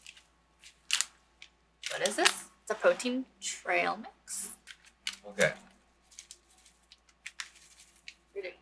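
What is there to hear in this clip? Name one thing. A plastic snack packet crinkles in a hand.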